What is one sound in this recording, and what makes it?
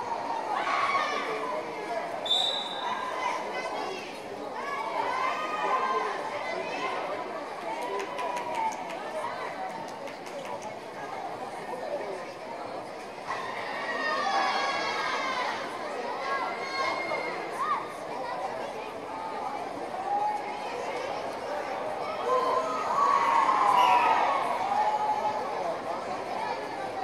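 A crowd in a large echoing hall chatters and calls out.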